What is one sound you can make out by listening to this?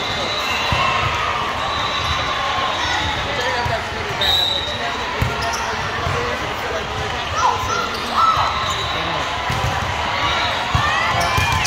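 Young players call out to one another in a large echoing gym.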